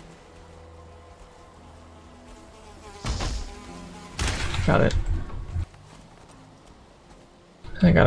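A weapon strikes a creature with a dull thud.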